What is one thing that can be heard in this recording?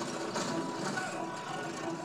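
A typewriter clacks quickly, heard through a loudspeaker.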